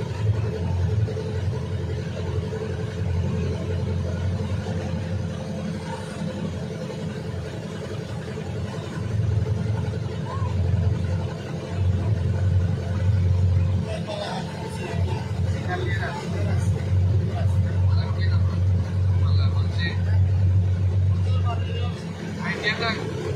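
Water splashes and rushes against a moving boat.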